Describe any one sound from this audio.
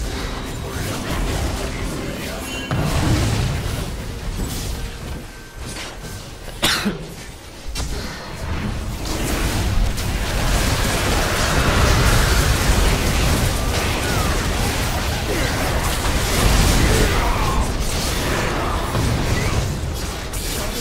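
A young man talks excitedly into a microphone.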